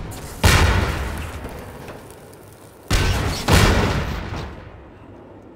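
Explosions boom nearby and rumble away.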